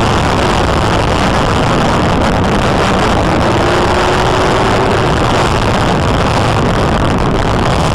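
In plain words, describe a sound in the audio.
A police SUV speeds along a road with loud road and wind noise.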